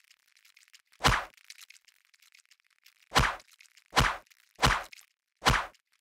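A soft toy thuds heavily against a wall several times.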